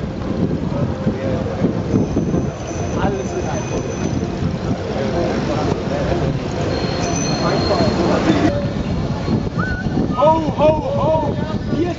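A crowd of cyclists chatters and calls out nearby.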